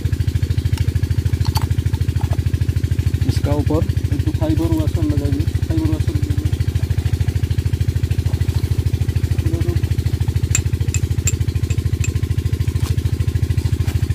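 A small diesel engine chugs steadily nearby.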